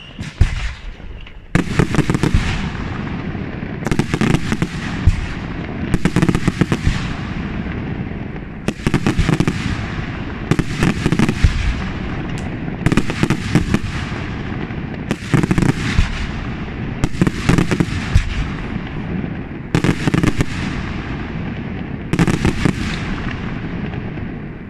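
Fireworks burst overhead with loud bangs, over and over.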